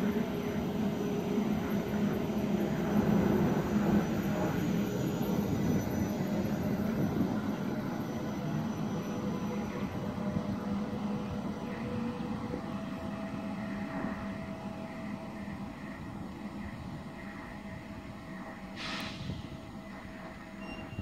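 An electric train hums and rumbles as it pulls away and slowly fades into the distance.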